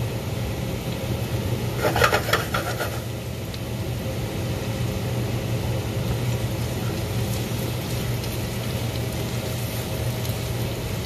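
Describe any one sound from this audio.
A gas flame roars steadily.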